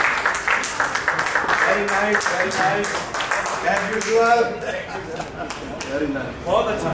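A group of men and women chatter quietly in the background.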